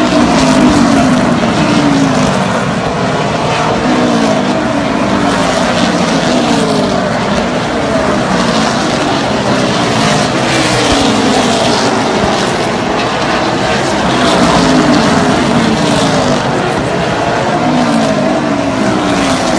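Race car engines rise and fall in pitch as cars pass by one after another.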